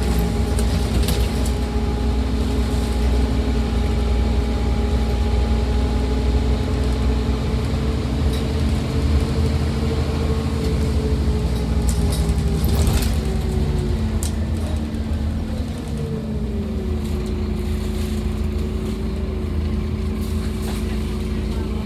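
The bus body rattles and clicks over bumps.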